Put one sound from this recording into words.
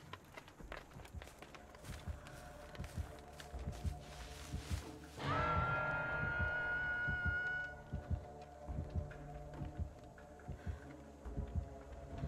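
Footsteps rustle through tall grass and dry leaves.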